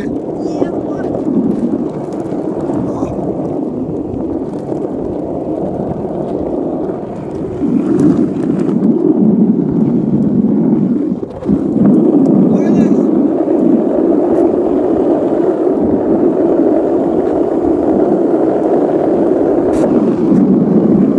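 Hard wheels roll and rumble steadily over rough pavement.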